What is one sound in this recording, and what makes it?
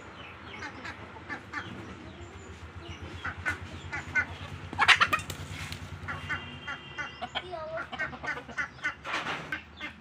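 Chickens peck at grain.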